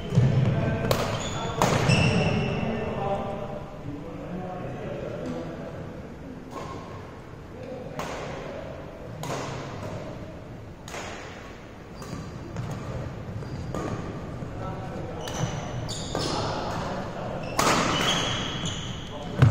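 Shuttlecocks are struck sharply with rackets, echoing in a large hall.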